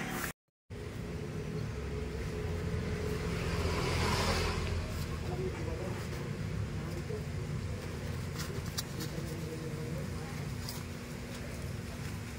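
Plastic tape rustles and crinkles as it is wrapped around a pipe.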